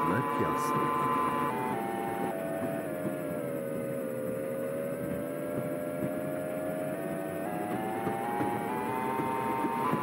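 Tram wheels rumble steadily on rails.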